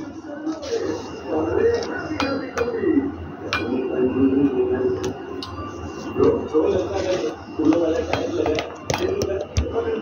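Seeds pour and patter into a metal bowl.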